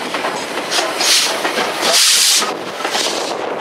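Steam hisses loudly from a locomotive.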